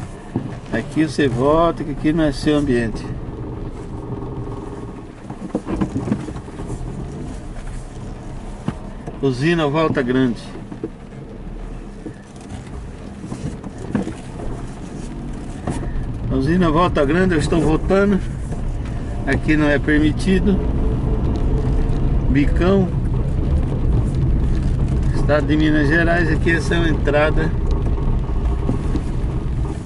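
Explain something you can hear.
A car engine hums steadily, with tyres rolling on wet road.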